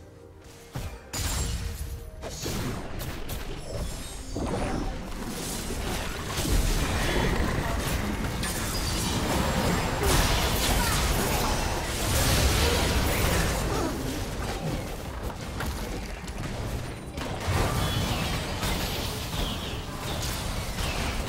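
Video game spells blast and crackle in a busy fight.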